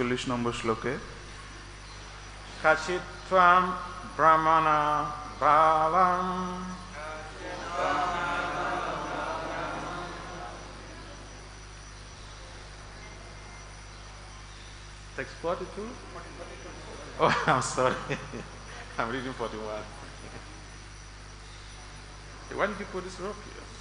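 An elderly man chants and speaks through a microphone.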